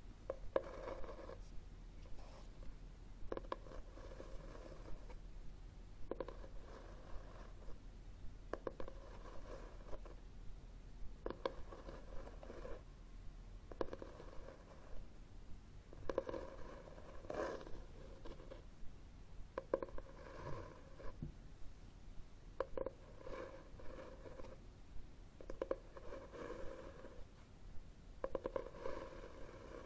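Fingernails scratch and tap on a cloth book cover close to a microphone.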